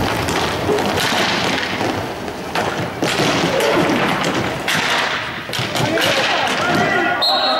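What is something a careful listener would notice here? Skates roll and scrape on a hard floor in a large echoing hall.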